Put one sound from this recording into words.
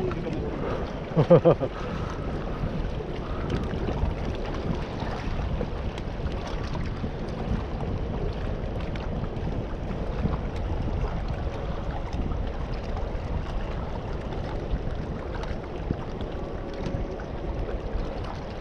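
Wind blows steadily across open water outdoors.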